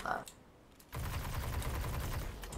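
An energy weapon fires in a rapid, steady burst.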